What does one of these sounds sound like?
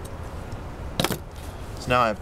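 A thin metal wire taps onto a wooden table.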